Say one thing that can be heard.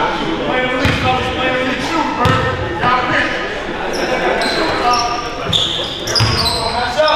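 A basketball thumps on a wooden floor.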